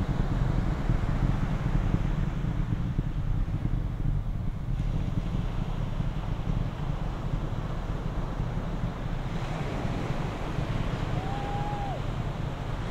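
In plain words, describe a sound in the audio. A rocket roars steadily in the distance as it climbs.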